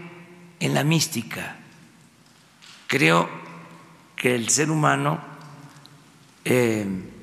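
An elderly man speaks slowly and deliberately into a microphone, with pauses between phrases.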